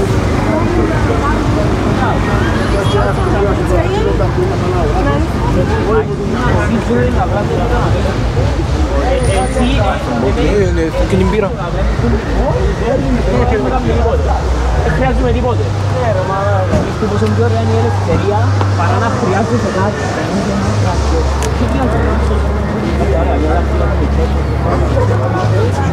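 Traffic hums steadily along a street.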